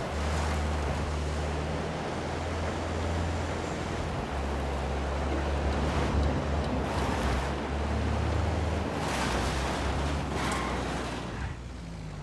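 An engine rumbles steadily as a truck drives along.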